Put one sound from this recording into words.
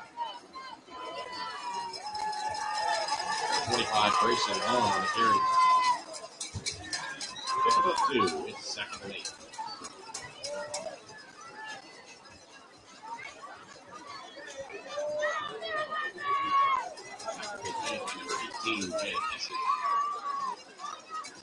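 A crowd of young men shouts and cheers outdoors.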